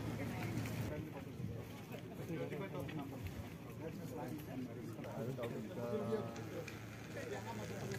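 Men talk quietly nearby outdoors.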